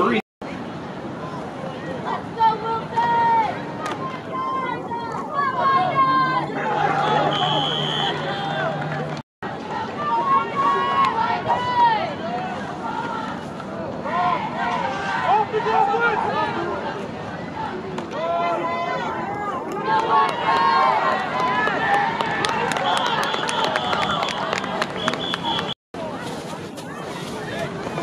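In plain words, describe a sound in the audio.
A crowd of spectators chatters and cheers outdoors.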